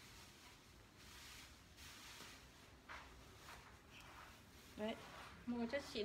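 Clothing rustles.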